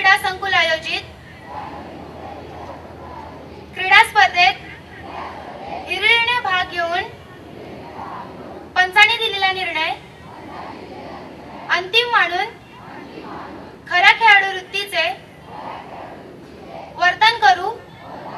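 A young girl declaims loudly through a microphone, in short bursts with pauses between.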